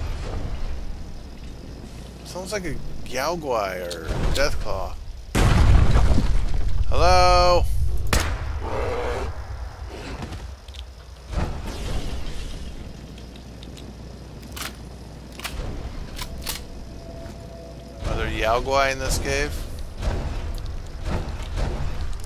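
Heavy armoured footsteps thud on rocky ground.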